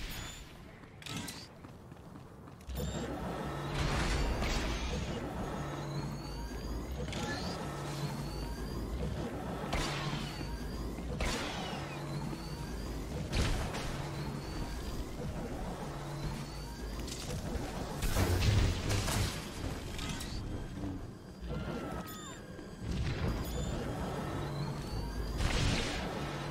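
Blaster shots and impacts ring out in a video game battle.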